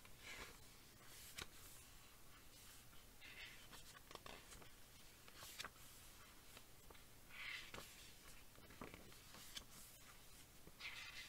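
A woman speaks quietly and slowly close to a microphone.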